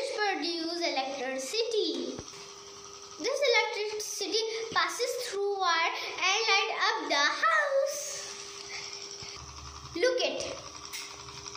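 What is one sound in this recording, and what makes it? A young girl talks calmly close by.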